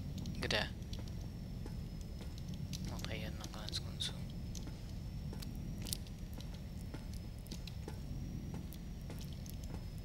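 Footsteps clank on metal grating.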